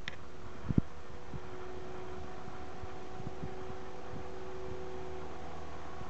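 A model helicopter's rotor whines steadily overhead.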